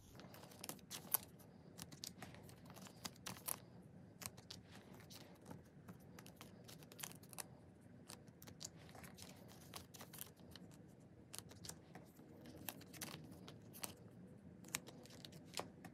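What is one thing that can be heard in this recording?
Cards tap and click softly against each other.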